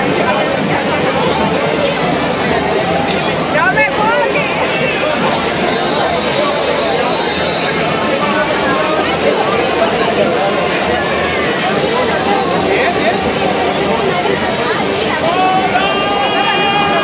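A crowd chatters and cheers in the street.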